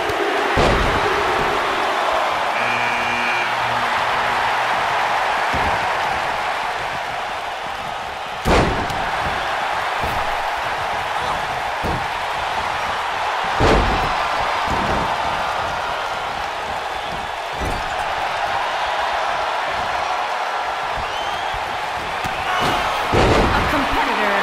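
Heavy thuds of bodies hitting a wrestling ring mat sound now and then.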